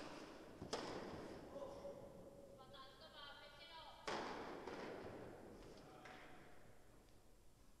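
A tennis player's shoes squeak on the court.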